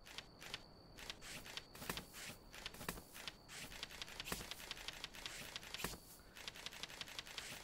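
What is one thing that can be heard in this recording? Short game menu clicks tick quickly, one after another.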